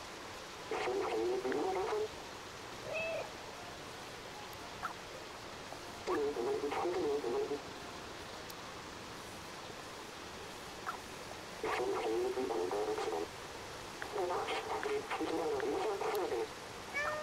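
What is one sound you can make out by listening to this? A waterfall rushes steadily in the background.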